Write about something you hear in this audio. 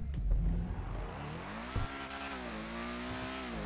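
A car engine revs, rising and falling in pitch.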